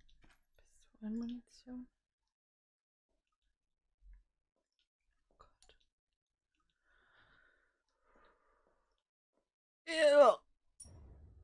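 A young woman speaks briefly and with animation into a close microphone.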